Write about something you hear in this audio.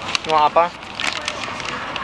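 A paper bag rustles.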